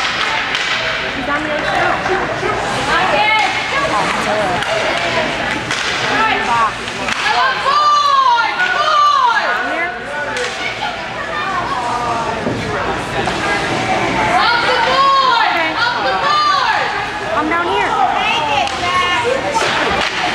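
Spectators nearby shout and cheer with excitement.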